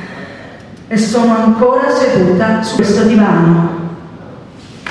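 A woman speaks into a microphone, heard through loudspeakers in a large room.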